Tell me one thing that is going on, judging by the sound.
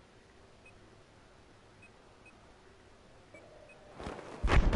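Soft electronic menu beeps sound a few times.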